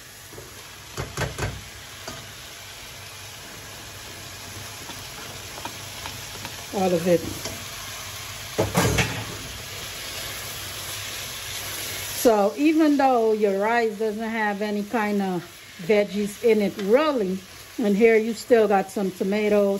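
A metal spoon clinks and scrapes against a pan.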